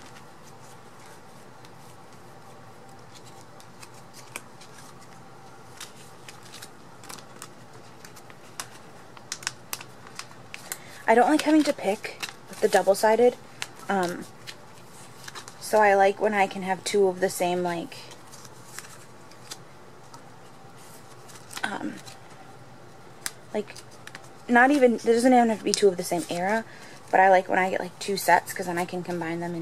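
Plastic sleeves crinkle and rustle as cards slide in and out.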